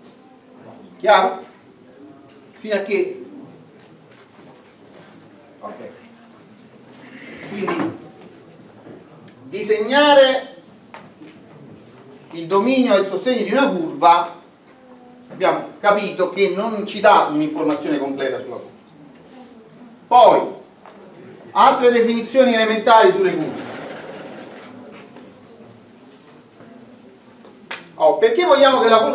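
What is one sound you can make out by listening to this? A middle-aged man lectures with animation.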